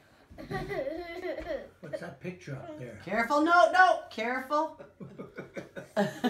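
An elderly woman laughs.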